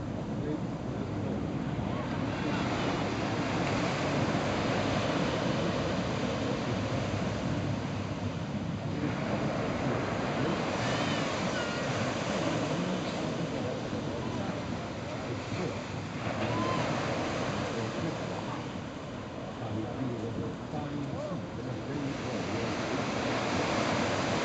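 Sea water washes and laps against rocks.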